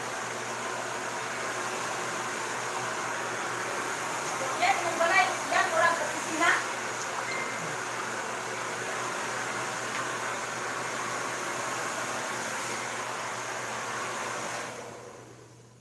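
A hair dryer blows with a steady roar, then shuts off.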